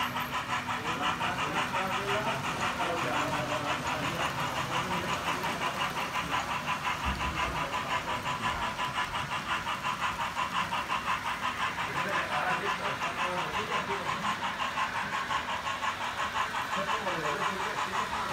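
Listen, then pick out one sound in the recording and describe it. A model train rattles steadily along the tracks with a fast clicking rhythm.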